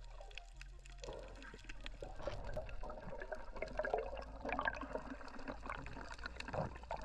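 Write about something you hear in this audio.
Air bubbles burble and fizz close by underwater.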